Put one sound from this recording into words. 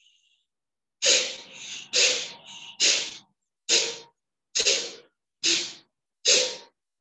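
A middle-aged man breathes out forcefully in short, regular bursts.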